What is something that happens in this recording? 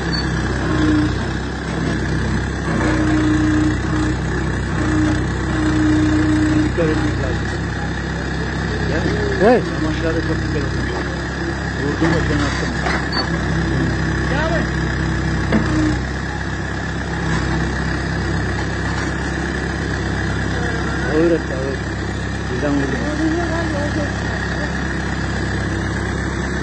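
A digger bucket scrapes into soil.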